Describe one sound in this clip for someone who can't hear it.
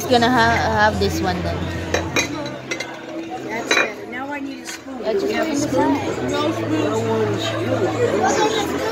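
A crowd of people chatters nearby in a busy, noisy room.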